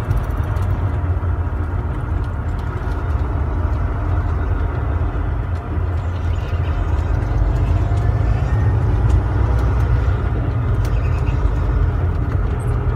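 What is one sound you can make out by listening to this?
A large vehicle's engine rumbles steadily from inside the cab as it drives.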